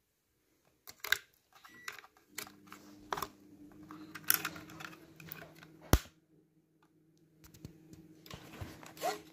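Fingers click a battery cover into place.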